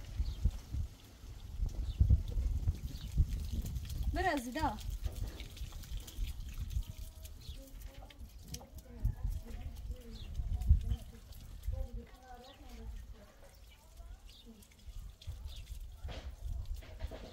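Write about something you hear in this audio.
Water from a hose splashes softly onto dirt.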